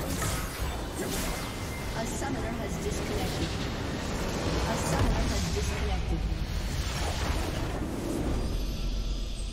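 Loud battle sound effects of spells and explosions crash and boom.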